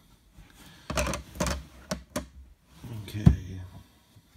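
Hard plastic cases clack together.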